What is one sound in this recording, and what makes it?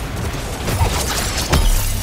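A blade swishes through the air in a video game.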